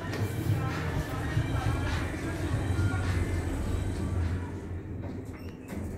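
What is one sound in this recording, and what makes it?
Elevator doors slide shut.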